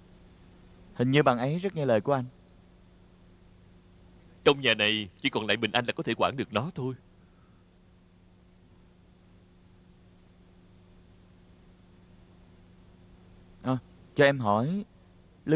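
A softer-voiced young man speaks quietly, close by.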